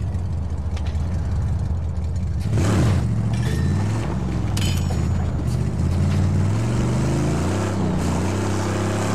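A car engine roars steadily and revs up and down.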